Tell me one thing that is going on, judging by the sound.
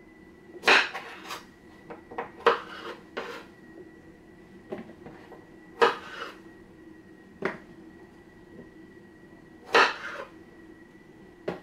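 A knife chops through zucchini on a cutting board with sharp knocks.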